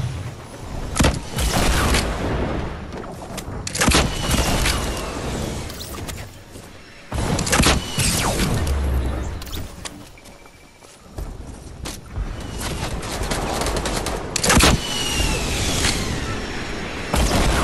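Gunshots and explosions bang repeatedly in a video game.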